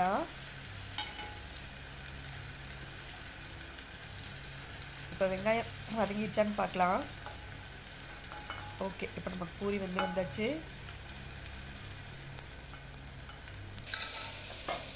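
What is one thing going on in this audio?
Hot oil sizzles and bubbles softly.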